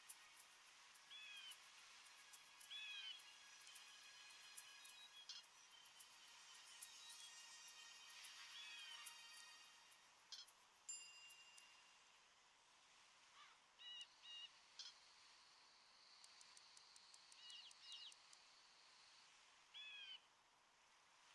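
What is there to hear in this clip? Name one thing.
Short high chirps sound again and again.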